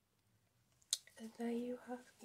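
A young woman speaks close by, calmly and clearly.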